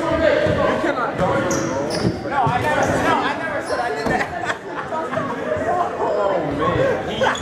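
Young men talk and call out in a large echoing hall.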